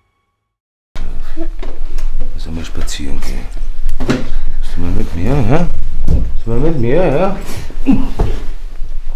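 A woman speaks loudly and emotionally up close.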